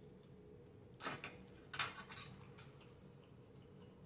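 A fork scrapes and clicks in a paper takeout box.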